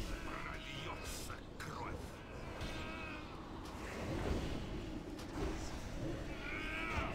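Magic spells whoosh and crackle over a low rumble.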